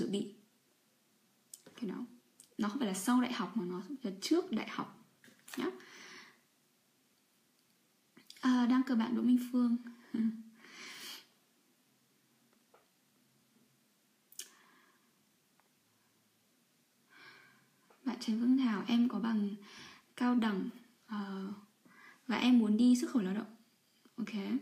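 A young woman talks calmly and close by, with pauses.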